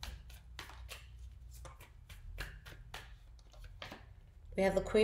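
Playing cards riffle and snap as they are shuffled.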